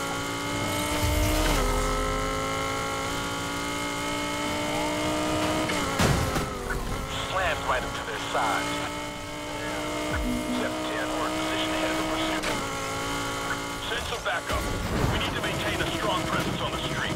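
A sports car engine roars at high revs, shifting gears as it speeds along.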